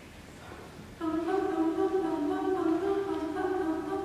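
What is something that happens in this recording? A group of young women sings together in close harmony in an echoing hall.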